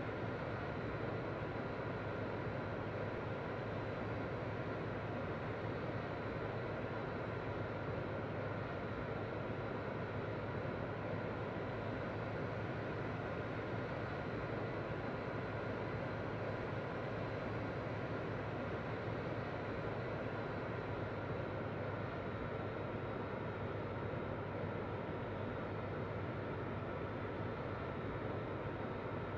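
Jet engines roar steadily in a cockpit.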